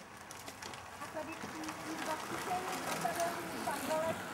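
Bicycle tyres crunch over a gravel road as several cyclists ride past.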